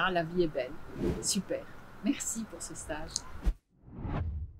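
A middle-aged woman speaks cheerfully and close by.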